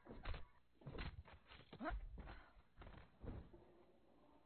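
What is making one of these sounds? A blade hacks into flesh with dull thuds.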